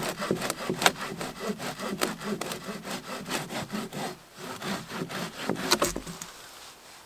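Twigs and branches rustle and snap as they are handled.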